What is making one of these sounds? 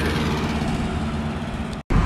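A motor scooter passes by on the road.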